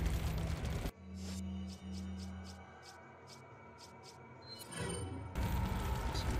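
Soft electronic menu clicks and beeps sound.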